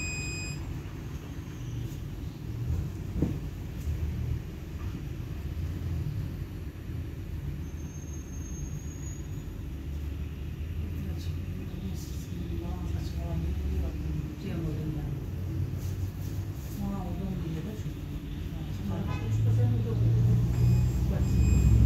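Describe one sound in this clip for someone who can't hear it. A tram rumbles steadily along its tracks, heard from inside.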